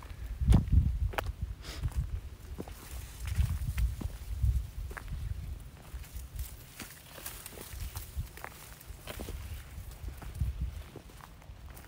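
Wind gusts and buffets outdoors.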